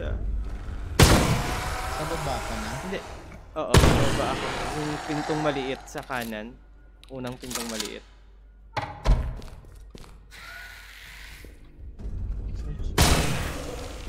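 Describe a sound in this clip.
A gun fires loud single shots that echo briefly.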